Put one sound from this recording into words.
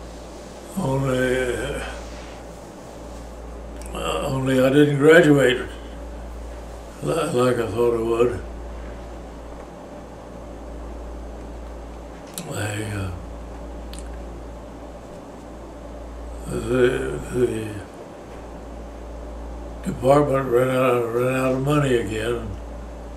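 An elderly man speaks slowly and calmly, close by, with pauses between phrases.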